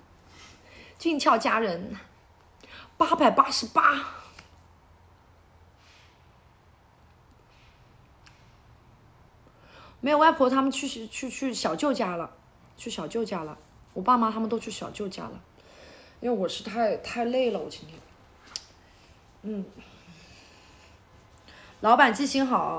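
A young woman talks casually and close up, in bursts with pauses.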